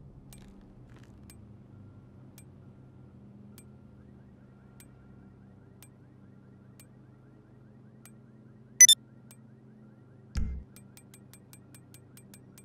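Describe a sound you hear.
Soft menu clicks tick at a steady pace.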